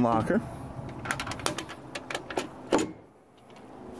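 A latch clicks and rattles.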